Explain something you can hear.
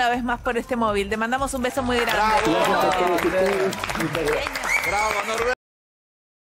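A woman speaks cheerfully into a microphone.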